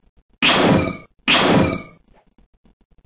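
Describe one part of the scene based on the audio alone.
Two loud explosions boom in quick succession.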